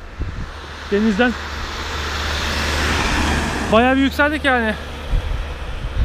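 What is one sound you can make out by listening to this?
A car drives past.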